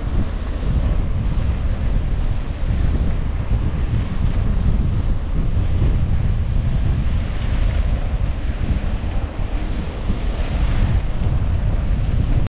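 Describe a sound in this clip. Bicycle tyres rumble and rattle over a gravel track.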